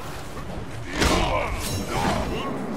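A magic blast whooshes.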